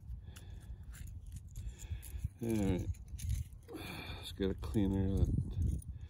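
Small metal parts click and scrape softly.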